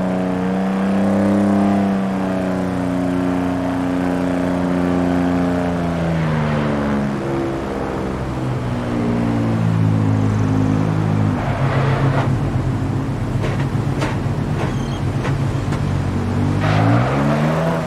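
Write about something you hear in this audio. A sports car engine hums at low speed and shifts pitch as it changes gear.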